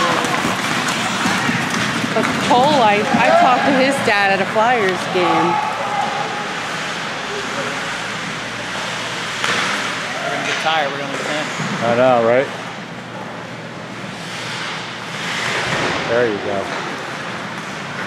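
Skates scrape and hiss across the ice in a large echoing hall.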